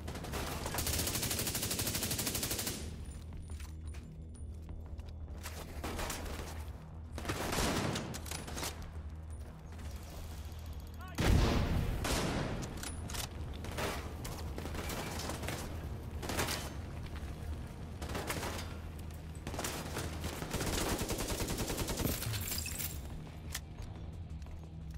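Rifle shots crack and echo.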